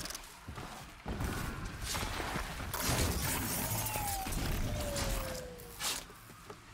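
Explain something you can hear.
A metal machine clanks and crashes nearby.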